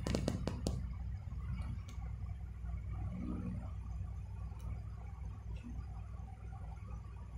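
A dog breathes softly while asleep.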